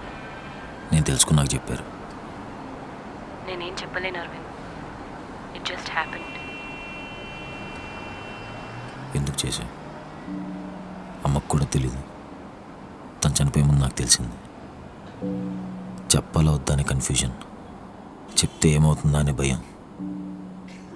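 A man speaks quietly into a phone, close by.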